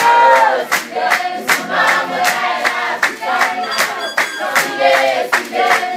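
Dancers stamp their feet in a rhythm on a hard floor.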